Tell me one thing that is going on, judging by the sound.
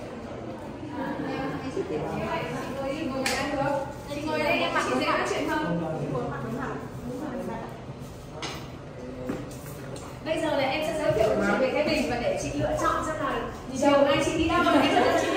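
Several women talk and laugh with animation nearby.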